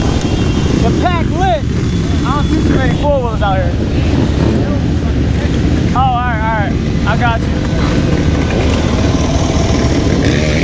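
A dirt bike engine revs nearby.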